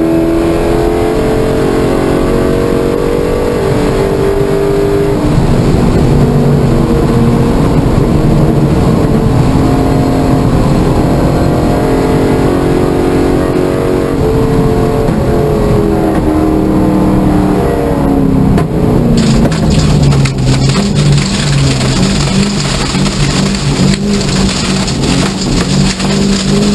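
A car engine roars loudly from inside the cabin, its pitch rising and falling through the gears.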